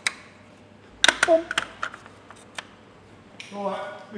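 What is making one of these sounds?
A plastic cap clicks as it is twisted onto an engine.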